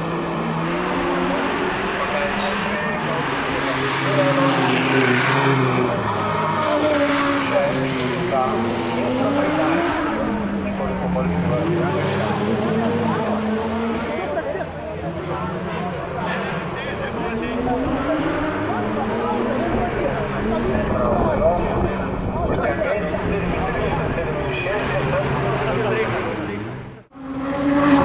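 Racing buggy engines rev and whine in the distance.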